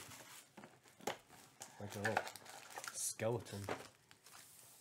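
A cardboard box lid is pulled open.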